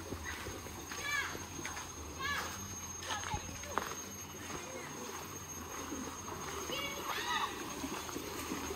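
Children shout and call out far off outdoors.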